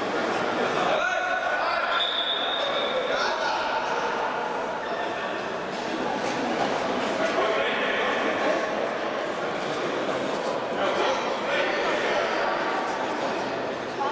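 A ball is kicked with a sharp thud.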